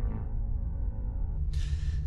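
A young man cries out in distress.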